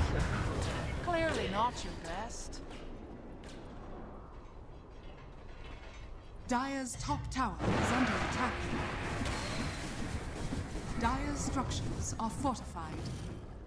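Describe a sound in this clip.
Game heroes cry out in short pitched shouts.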